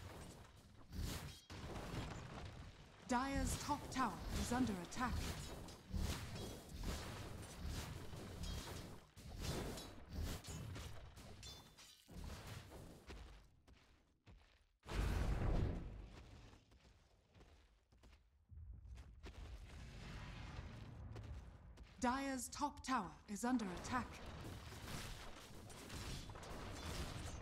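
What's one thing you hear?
Blows and magic blasts clash in a game battle.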